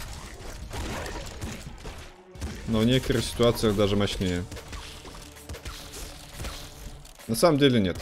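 Gunfire and explosions crackle from a video game.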